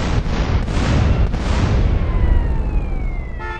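An explosion booms loudly.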